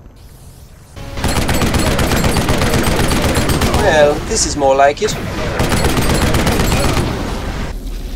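A heavy machine gun fires in rapid continuous bursts.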